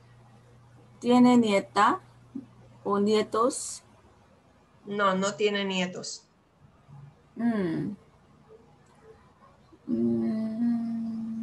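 A woman speaks calmly in short phrases through an online call.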